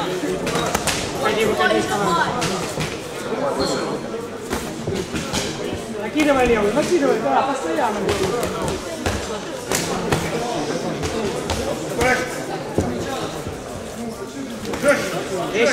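Boxing gloves thud against bodies and heads.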